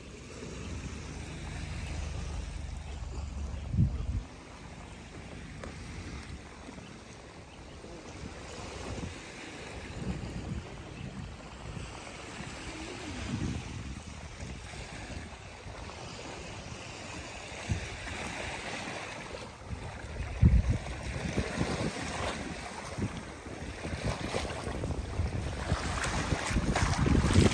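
Wind blows outdoors, rustling through palm trees.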